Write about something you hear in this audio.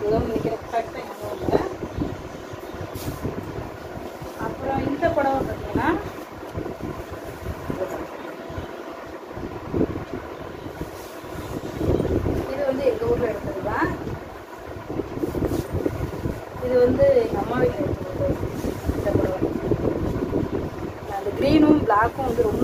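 Fabric rustles and swishes as it is handled and unfolded.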